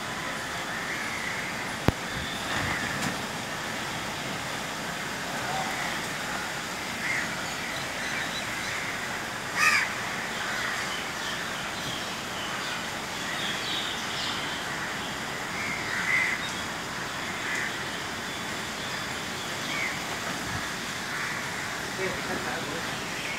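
Wind rustles through the trees.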